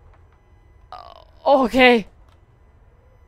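A young woman exclaims loudly into a nearby microphone.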